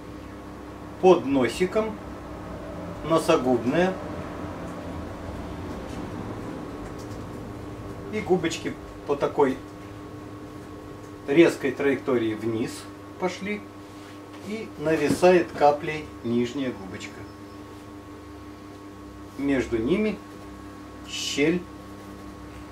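A middle-aged man talks calmly in short bursts, close by.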